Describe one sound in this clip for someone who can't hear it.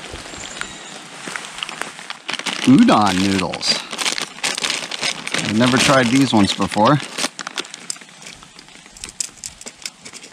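A plastic packet crinkles and rustles in hands.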